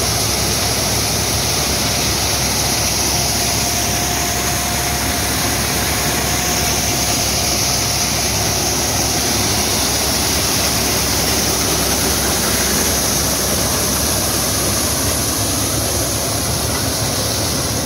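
Corn kernels rattle as they are poured into a threshing machine.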